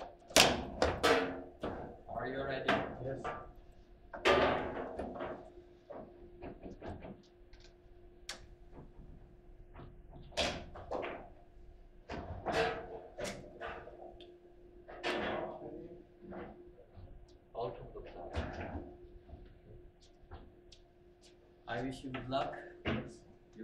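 A foosball ball clacks and knocks against the table's rods and walls.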